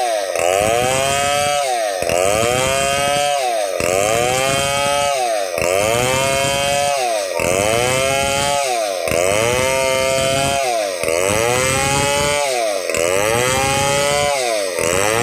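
A chainsaw roars loudly as it cuts lengthwise through a log, its engine rising and falling in steady repeated surges.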